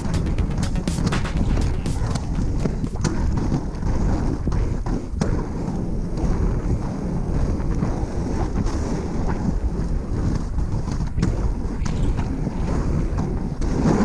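Inline skate wheels roll and rumble over rough pavement.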